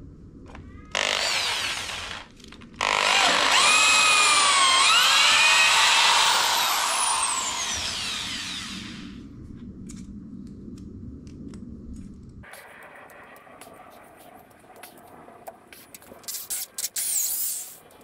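A power drill whirs loudly, bores into wood and winds down.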